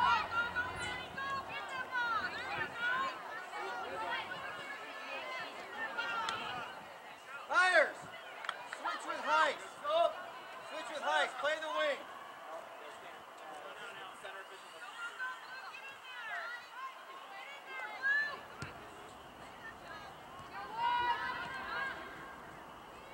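A crowd of spectators shouts and cheers outdoors at a distance.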